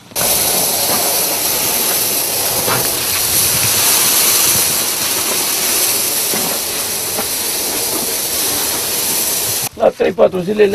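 Grain pours out of a sack and hisses onto a pile.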